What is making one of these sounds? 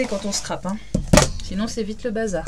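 A rubber stamp thumps down onto paper.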